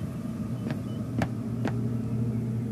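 An electronic scanner clicks a few times.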